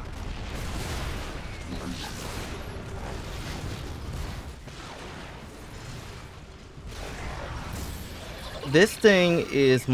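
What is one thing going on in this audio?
Explosions boom in a video game battle.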